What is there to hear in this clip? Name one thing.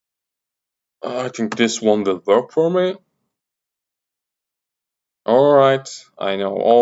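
A man speaks calmly and close into a microphone, with pauses.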